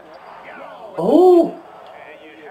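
A young man shouts out loudly.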